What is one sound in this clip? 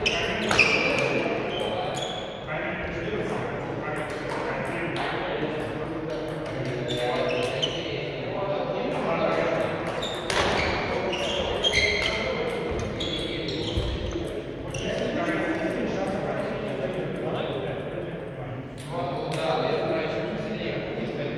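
Sports shoes squeak sharply on a hard court floor.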